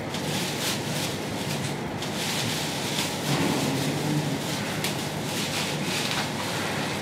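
Plastic sleeves rustle and crinkle as they are pulled on.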